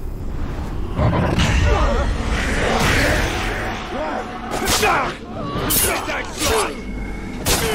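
Fighters grunt and cry out as they are struck.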